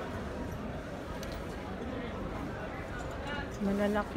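Clothes rustle as hangers are pushed along a rail.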